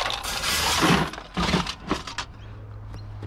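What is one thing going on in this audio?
A wire basket rattles and clanks against metal.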